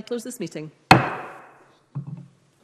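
A wooden gavel strikes once with a sharp knock that echoes through a large hall.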